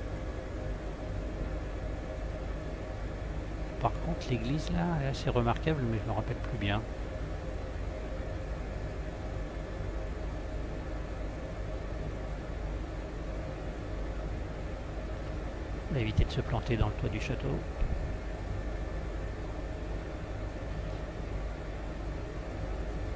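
A helicopter engine and rotor drone steadily from inside the cabin.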